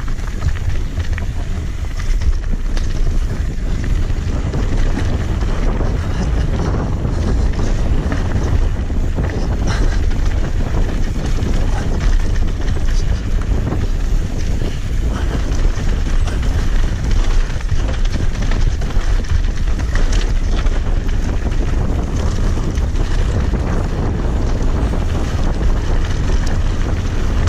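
A bicycle frame and chain rattle over bumps.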